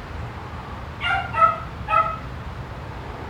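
A dog barks three times nearby.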